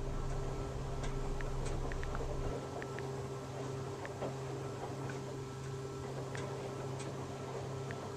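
Soft keyboard clicks tap quickly.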